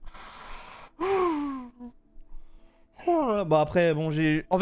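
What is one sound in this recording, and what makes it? A man groans and speaks with animation close to a microphone.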